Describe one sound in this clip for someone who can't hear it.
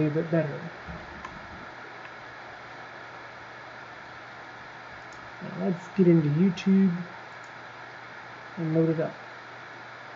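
A young man speaks calmly and haltingly, close to a microphone.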